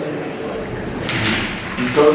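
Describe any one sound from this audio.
Paper rustles as a man handles a sheet.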